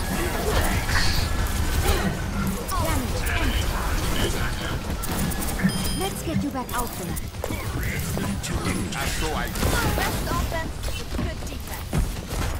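An energy beam hums and crackles.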